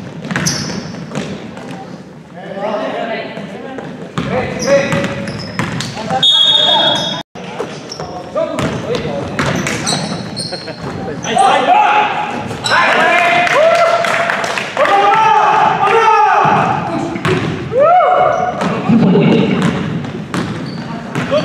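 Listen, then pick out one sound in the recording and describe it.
Men shout and call out across an echoing gym.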